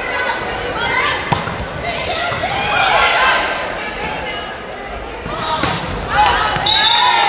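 Young women players call out and shout on court.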